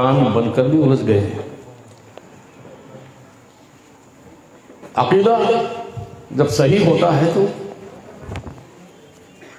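A man chants loudly into a microphone in bursts, his voice echoing through loudspeakers.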